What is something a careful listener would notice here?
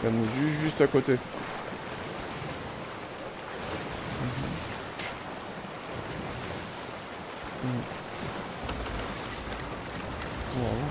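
Wind blows steadily over open water.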